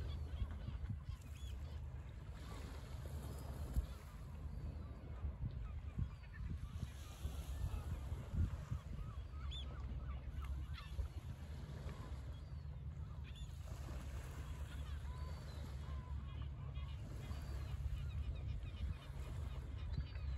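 Gulls call now and then.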